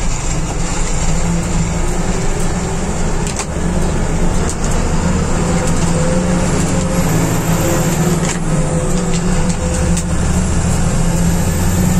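A bus body rattles and knocks over a rough road.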